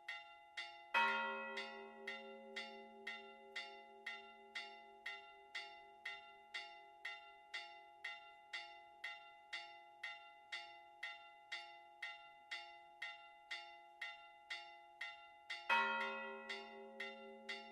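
A deeper bell strikes loudly and rings on.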